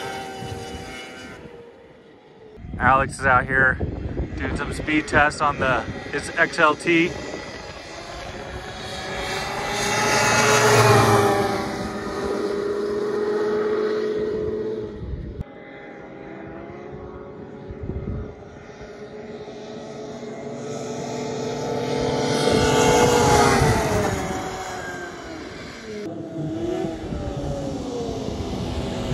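A snowmobile engine drones and revs, swelling loud as it passes close by and fading as it moves away.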